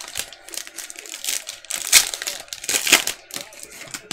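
A foil trading card pack is torn open.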